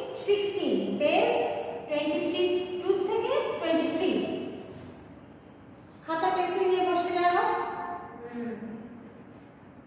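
A woman speaks clearly and with animation.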